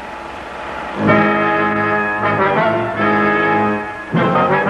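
Music plays loudly through a film projector's loudspeaker.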